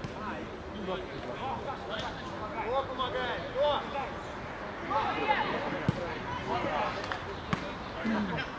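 Men shout to each other across an open outdoor field.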